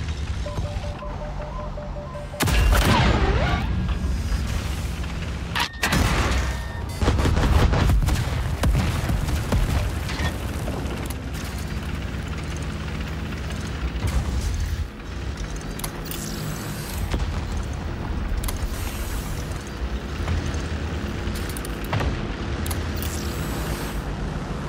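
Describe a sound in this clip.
A tank engine rumbles steadily throughout.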